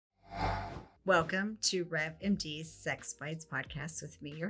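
A woman speaks calmly and warmly into a close microphone.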